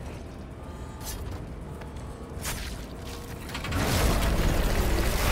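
Heavy blows and thuds land in a struggle.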